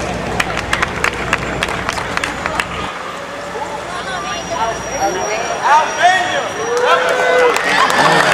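A crowd of people chatters outdoors.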